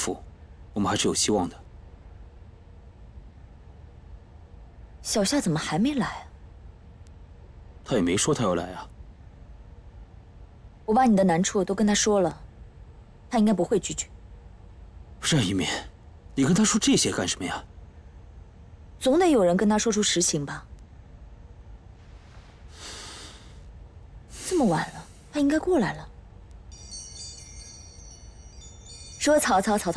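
A young woman speaks earnestly, close by.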